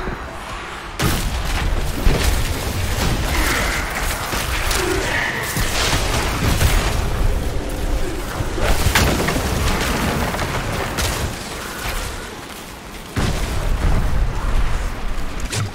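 Magic spells crackle and burst in quick, repeated blasts.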